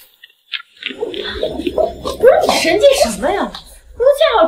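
A young woman speaks close by with animation.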